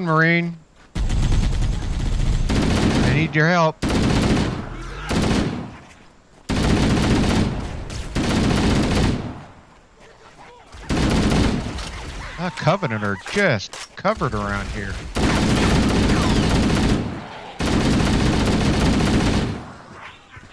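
An automatic rifle fires in loud, rapid bursts.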